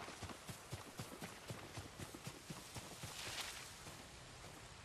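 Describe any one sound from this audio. Tall grass rustles and swishes against a runner's legs.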